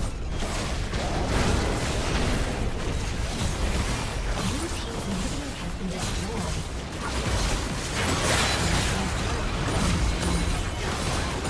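Video game spells and attacks crackle and boom in a busy fight.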